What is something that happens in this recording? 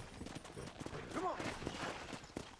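A horse snorts and whinnies.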